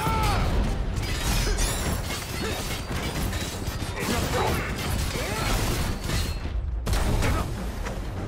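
Fiery blasts and impacts crackle and boom again and again.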